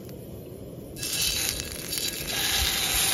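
A steak sizzles loudly in a hot pan.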